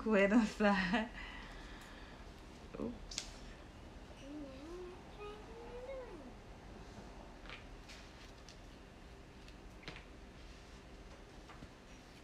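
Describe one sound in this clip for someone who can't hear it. A comb rustles through thick hair.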